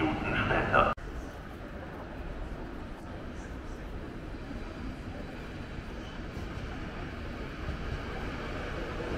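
A train rolls by at a distance.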